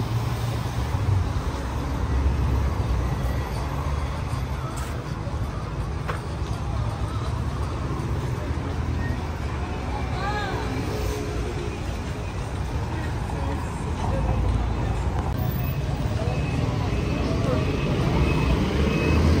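Footsteps scuff on paving close by.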